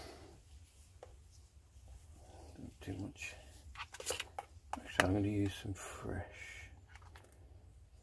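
A plastic tub crinkles and clicks as it is handled.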